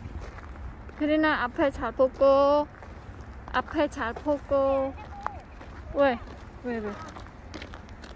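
A young girl calls out in a high voice close by.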